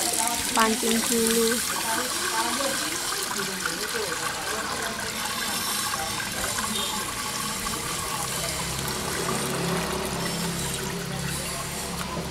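Water pours from a bucket into a pump and splashes.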